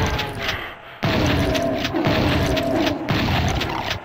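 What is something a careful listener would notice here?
A monster roars and groans as it dies.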